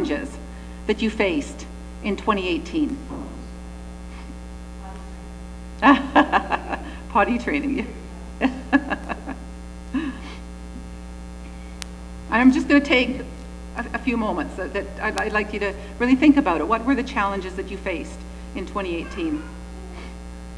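A woman speaks calmly into a microphone, pausing often.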